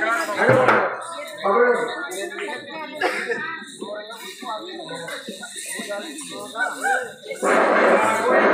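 A crowd of men and women talk and call out nearby, outdoors.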